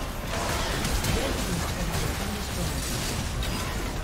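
A stone tower collapses with a heavy crash.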